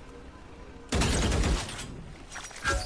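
An ability is thrown with a sharp whoosh.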